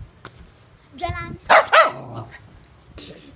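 A young girl laughs loudly close to a phone's microphone.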